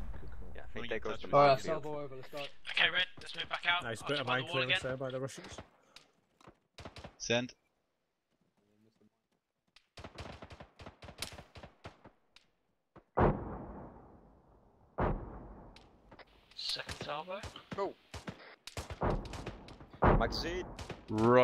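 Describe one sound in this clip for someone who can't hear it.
A machine gun fires bursts of shots.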